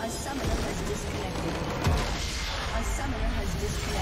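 A structure explodes with a loud blast.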